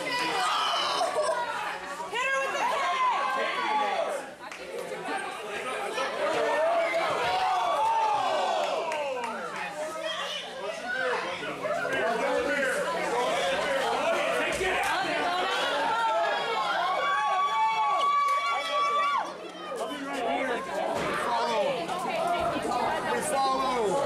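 A young woman screams loudly up close.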